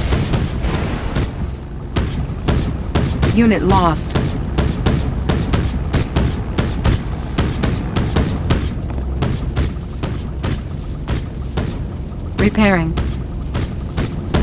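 Guns fire and shells explode in rapid bursts.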